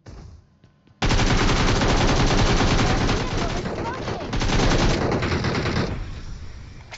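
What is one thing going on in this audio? A gun fires in rapid bursts, loud and close.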